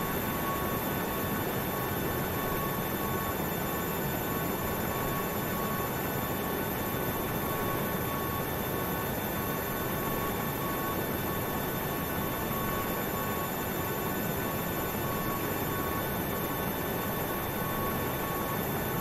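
A parked jet's engine hums and whines steadily.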